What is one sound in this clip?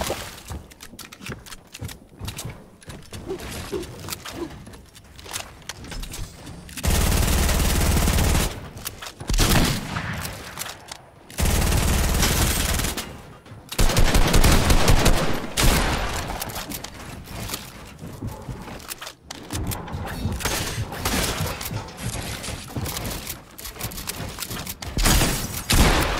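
Building pieces snap into place with quick clicks and thuds.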